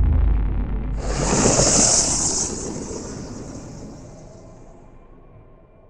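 A fiery blast roars and slowly fades.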